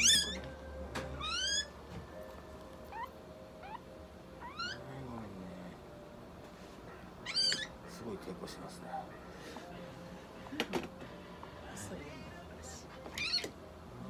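A cat meows in short, high, rising cries, several times.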